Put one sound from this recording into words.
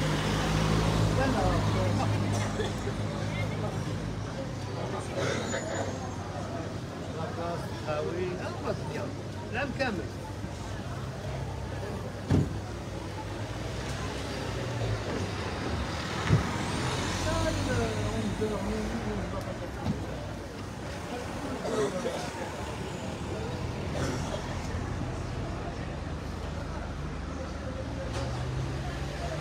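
Several men talk casually nearby outdoors.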